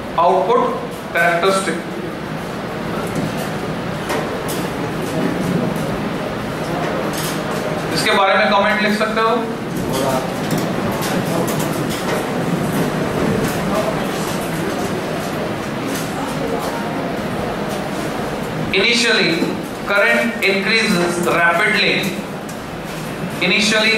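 A man lectures clearly in a room, heard through a microphone, with pauses between phrases.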